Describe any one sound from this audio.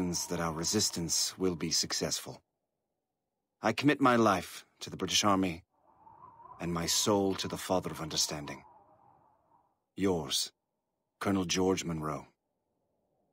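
A man reads a letter aloud in a calm, measured voice.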